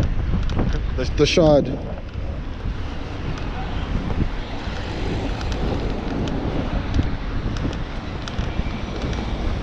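Tyres hum on a smooth road.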